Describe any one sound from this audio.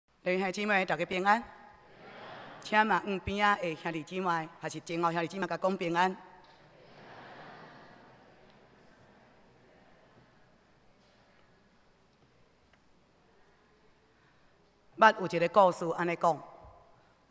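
A middle-aged woman speaks calmly into a microphone in an echoing hall, pausing between phrases.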